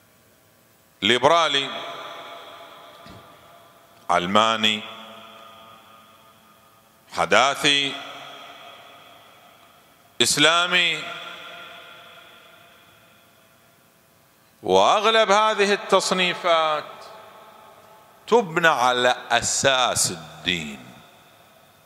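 A man speaks with emotion through a microphone in short bursts, his voice echoing and trailing off in a large hall.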